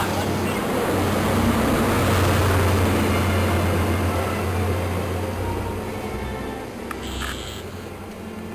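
A diesel engine drones loudly as a locomotive passes.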